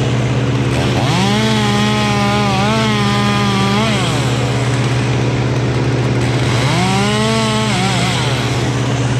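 A chainsaw cuts through a thick tree trunk.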